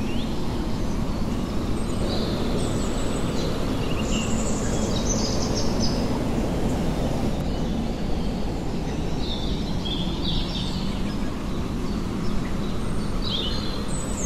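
Wind blows steadily through the trees outdoors.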